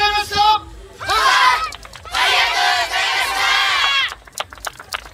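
A group of children chant loudly together.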